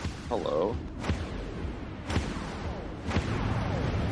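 Laser guns fire in short bursts.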